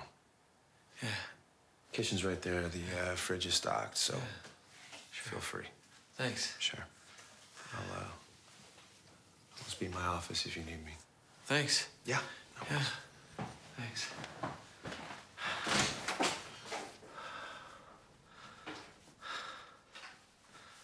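A second man answers quietly, close by.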